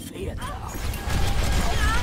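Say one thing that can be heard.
A video game energy beam hums while firing.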